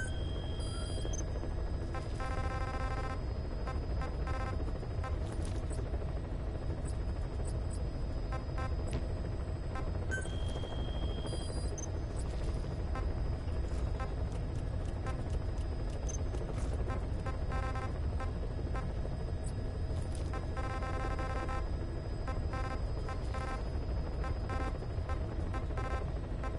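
Short electronic beeps and blips chirp repeatedly.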